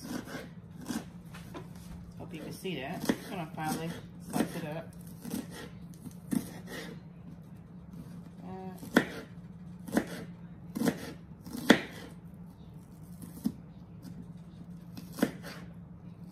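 A knife chops food on a plastic cutting board.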